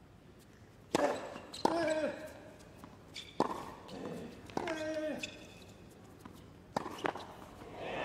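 Tennis racquets strike a ball with sharp pops.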